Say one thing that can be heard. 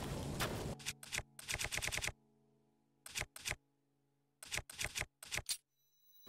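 Short game menu clicks tick in quick bursts as items are scrolled.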